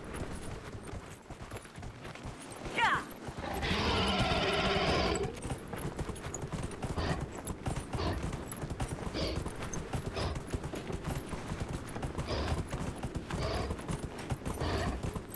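A large beast's heavy hooves thud on sand in a slow, steady plod.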